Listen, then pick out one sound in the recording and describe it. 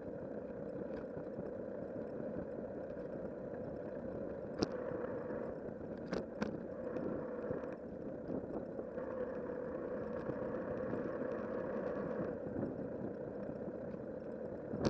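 Bicycle tyres roll over a paved path.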